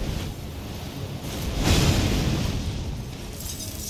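A sword swishes and clashes against armour.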